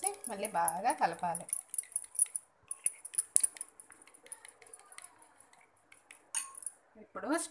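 A fork clinks rapidly against a bowl, whisking eggs.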